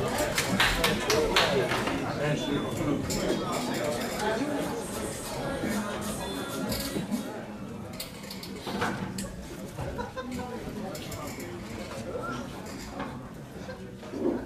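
A crowd of men chatters in a large echoing hall.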